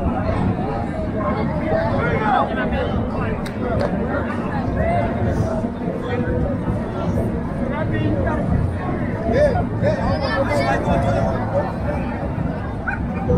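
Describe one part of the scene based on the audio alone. A crowd of men and women murmurs and chatters outdoors all around.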